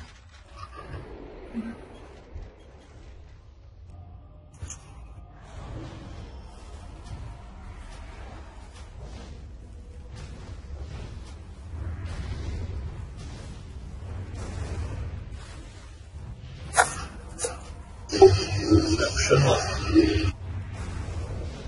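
Spell effects crackle and whoosh during a fight.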